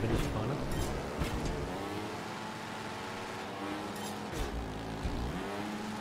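A motorbike engine revs and whines, rising and falling in pitch.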